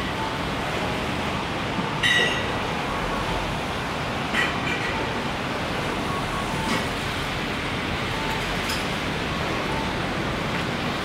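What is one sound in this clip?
Outdoor street noise hums steadily all around.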